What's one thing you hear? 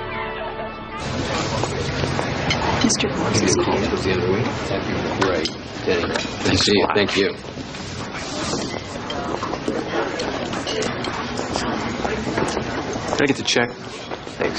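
Diners chatter in a busy room.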